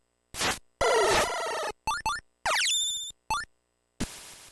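A short electronic jingle plays with a rising, warbling tone.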